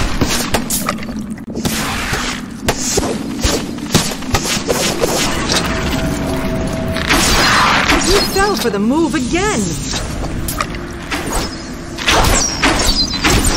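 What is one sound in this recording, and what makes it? Blows and impacts thud repeatedly in a fight.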